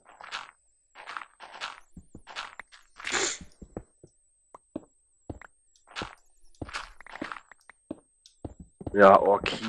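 A pickaxe chips at stone in quick, repeated bursts.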